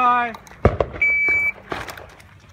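A shot timer gives a single steady beep.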